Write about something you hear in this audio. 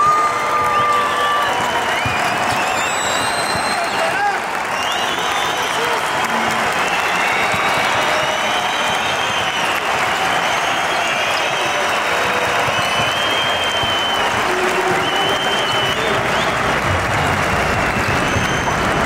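A large crowd cheers and whistles loudly in a big echoing arena.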